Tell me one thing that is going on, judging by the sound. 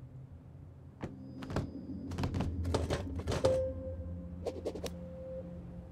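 Loud wooden knocks and clatters sound as a structure is built.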